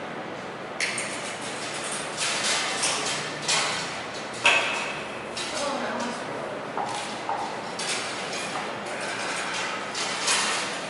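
Plastic sheeting rustles and crinkles.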